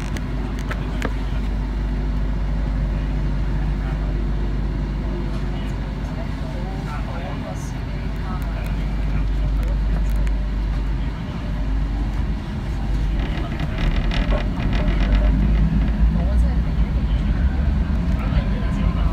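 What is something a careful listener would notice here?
A train rumbles steadily through a tunnel, growing louder toward the end.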